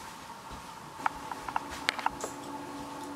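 Small clicks and taps sound on a countertop.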